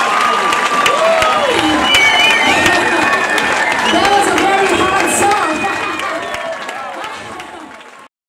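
A band plays loud rock music live, then fades away.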